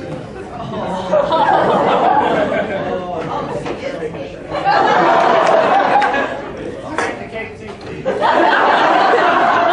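An audience cheers loudly.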